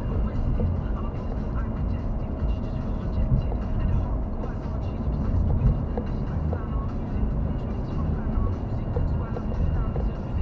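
A car drives steadily along a road, its engine and tyres rumbling low from inside the cabin.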